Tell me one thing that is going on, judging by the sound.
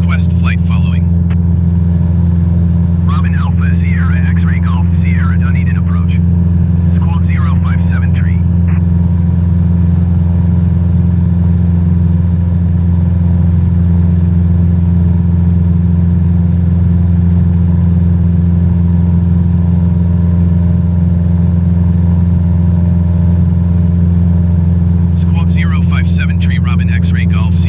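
A propeller plane's engine drones steadily from inside the cabin.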